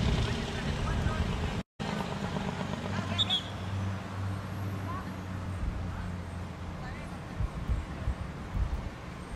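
Young women call out to each other across an open field.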